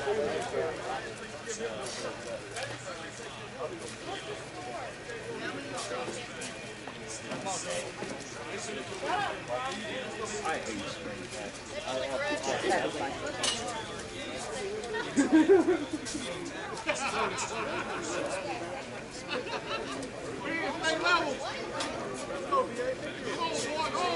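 Men talk and call out across an open field outdoors.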